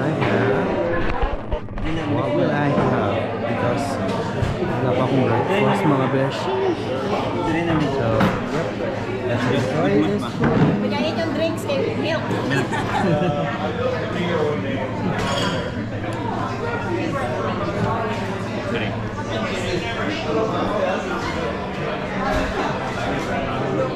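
Many people chatter in the background of a busy, echoing room.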